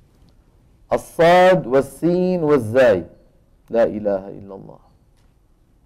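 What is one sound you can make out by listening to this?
A man speaks slowly and clearly into a microphone.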